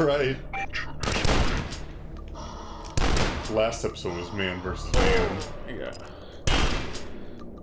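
A shotgun fires loud, booming blasts.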